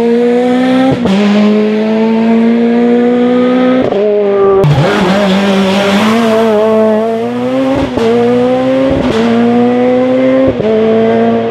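A rally car engine cracks sharply as gears change.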